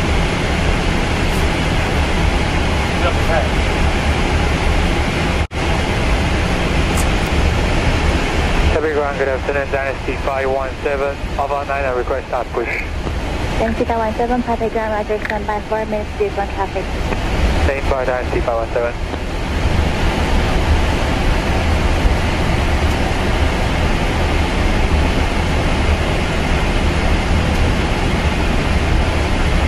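A jet engine hums with a steady low rumble.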